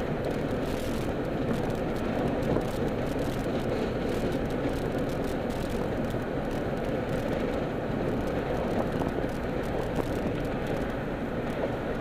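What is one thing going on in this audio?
A car engine hums steadily from inside the moving car.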